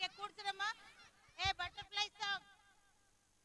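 A girl speaks loudly and with animation close by.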